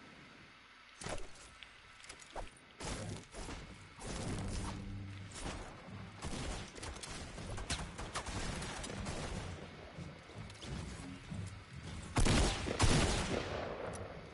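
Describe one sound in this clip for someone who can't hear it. A pickaxe strikes wood with sharp, repeated knocks.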